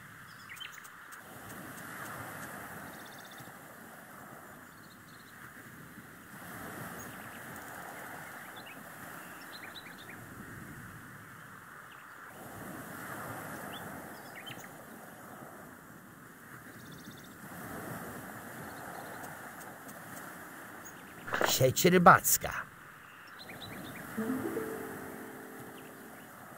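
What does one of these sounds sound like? Gentle waves wash softly in slow swells.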